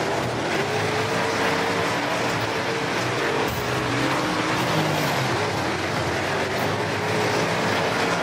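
A racing car engine roars loudly and steadily at high revs.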